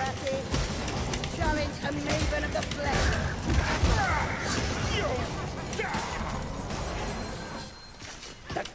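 A heavy weapon strikes a large creature with loud thuds.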